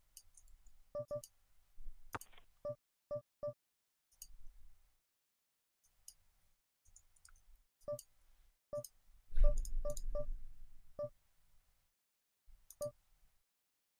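Short electronic chimes sound now and then.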